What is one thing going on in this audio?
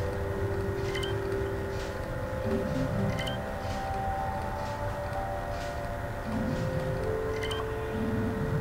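Soft electronic menu blips chime now and then.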